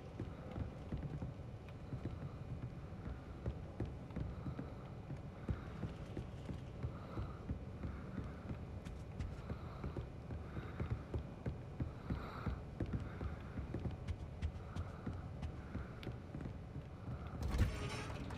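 Footsteps tap steadily on a hard floor in a large echoing hall.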